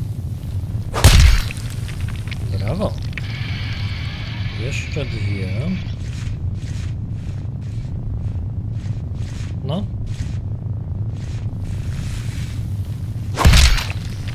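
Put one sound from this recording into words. A giant spider's leg thuds heavily into the ground.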